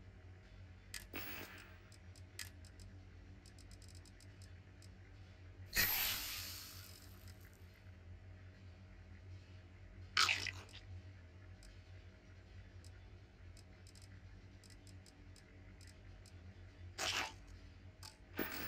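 Soft menu clicks tick now and then, with short whooshes in between.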